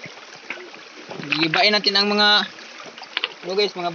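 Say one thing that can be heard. A small stream trickles over stones.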